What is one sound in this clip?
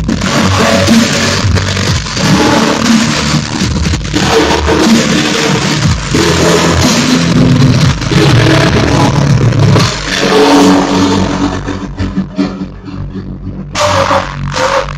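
Loud electronic dance music with a heavy bass beat plays through big speakers.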